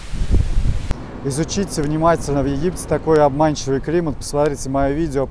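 A man talks calmly and close, into a clip-on microphone.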